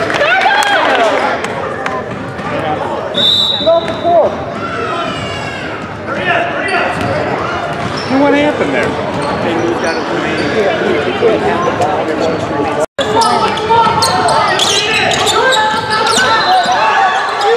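Spectators and players call out and chatter in a large echoing gym.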